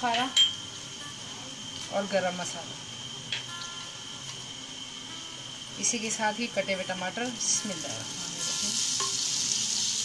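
A spoon scrapes and stirs inside a clay pot.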